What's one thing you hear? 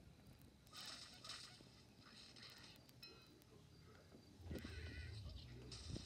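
Cartoonish sound effects play from a tablet's small speaker.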